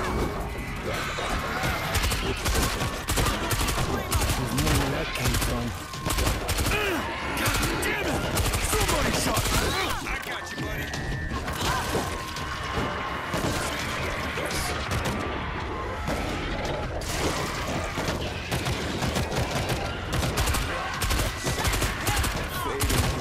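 A crowd of zombies snarls and shrieks.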